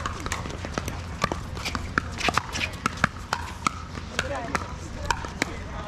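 Players' shoes squeak and scuff on a hard court.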